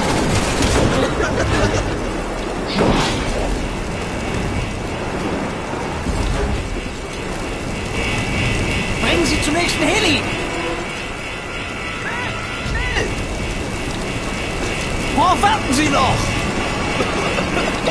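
A fire roars and crackles steadily.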